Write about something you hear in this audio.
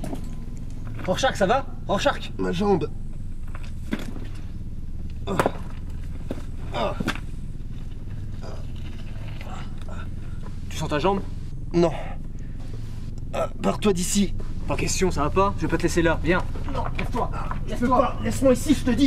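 A young man speaks breathlessly and strains.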